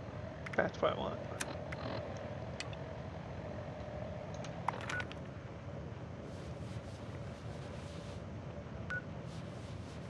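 Short electronic menu blips and clicks sound now and then.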